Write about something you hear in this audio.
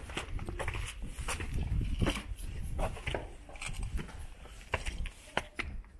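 Footsteps climb stone steps.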